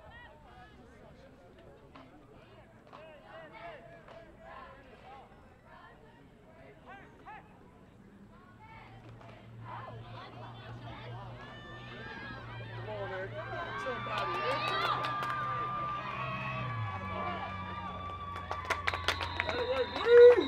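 Boys and men shout and call out across an open outdoor field.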